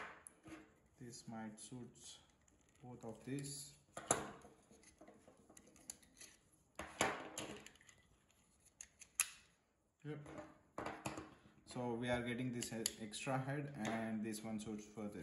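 Plastic trimmer combs click and clack as they are handled.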